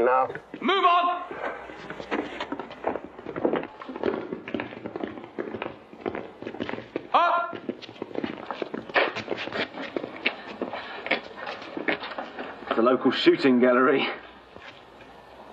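Footsteps shuffle along a stone corridor.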